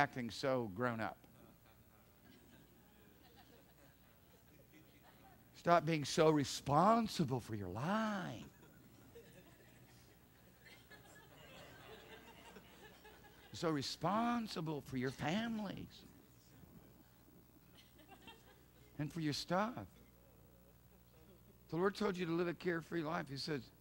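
A middle-aged man speaks to an audience through a microphone, in bursts with long pauses.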